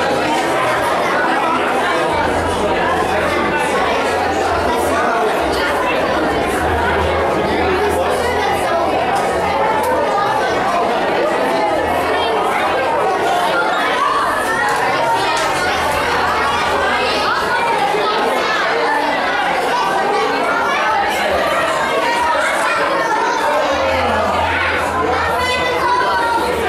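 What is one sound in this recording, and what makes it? A crowd of people chatters loudly and continuously nearby.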